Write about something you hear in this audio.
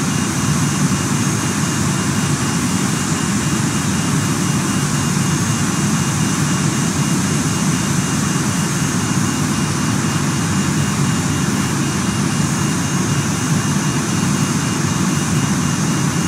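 Jet engines whine and hum steadily at idle.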